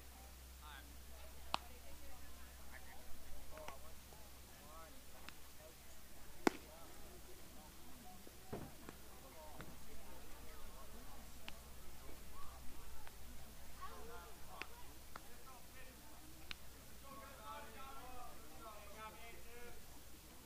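Distant voices of players call out across an open field.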